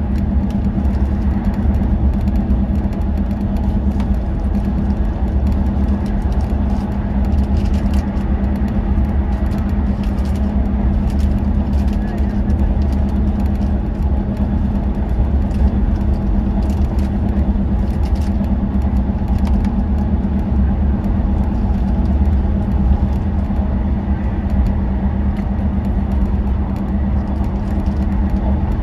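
A vehicle's engine drones steadily as it drives along a motorway.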